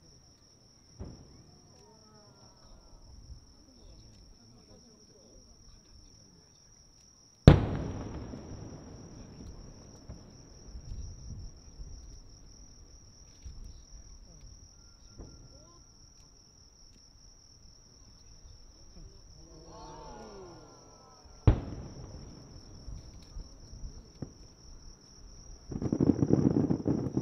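Fireworks burst with deep booms that echo far off.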